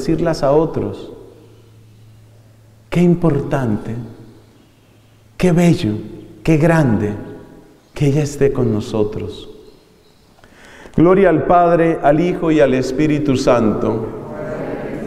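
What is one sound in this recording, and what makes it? A man speaks slowly through a microphone, heard over loudspeakers in an echoing room.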